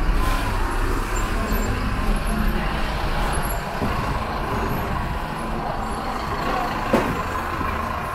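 A city bus rumbles past close by.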